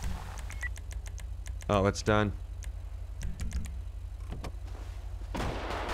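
A car door opens and thumps.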